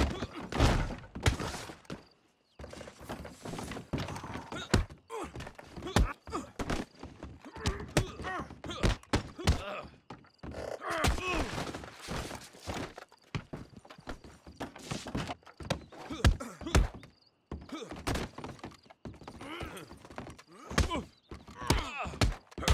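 A man grunts and groans with effort.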